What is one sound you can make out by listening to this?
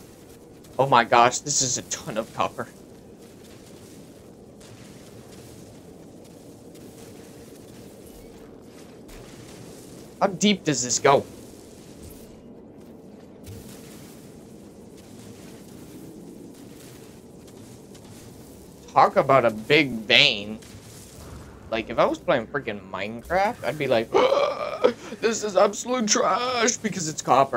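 A young man talks with animation into a close microphone, in bursts.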